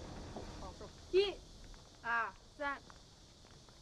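A woman's voice calls out nearby.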